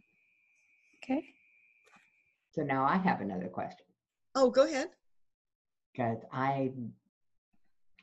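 An elderly woman speaks calmly and warmly into a microphone.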